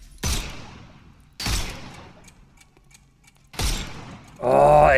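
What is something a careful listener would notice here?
A pistol fires loud single shots in an echoing hall.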